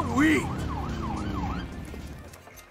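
A police siren wails briefly.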